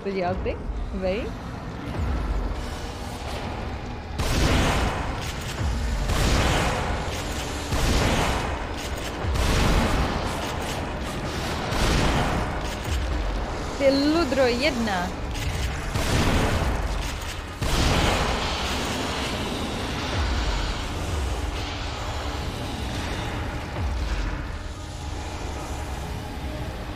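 A young woman speaks into a microphone with animation.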